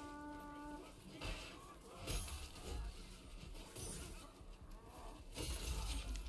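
Swords clash and clang in a fierce melee.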